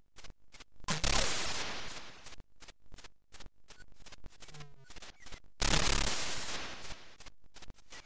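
A harsh hissing game blast bursts out and fades.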